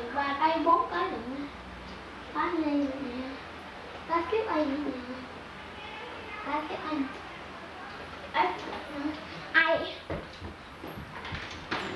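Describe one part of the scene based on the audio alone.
Young children chatter and squeal close by.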